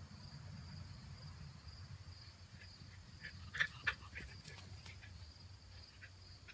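Puppies' paws rustle through grass close by.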